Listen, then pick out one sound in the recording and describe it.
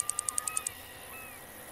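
A fishing reel clicks rapidly.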